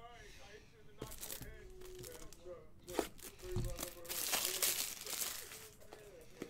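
A plastic card box rattles and clicks as a hand picks it up.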